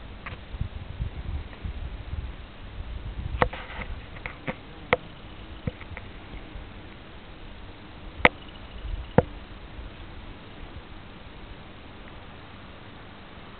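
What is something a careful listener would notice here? A dog sniffs at the grass.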